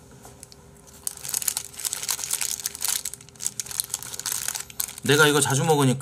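A young man bites and chews crunchy food close to a microphone.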